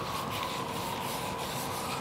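A paintbrush brushes softly along wooden trim.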